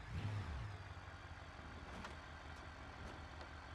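Metal scrapes and crunches against rock as a car rolls over.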